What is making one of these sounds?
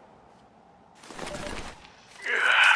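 Paper rustles briefly.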